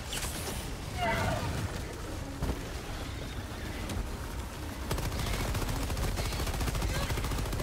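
Explosions rumble deeply.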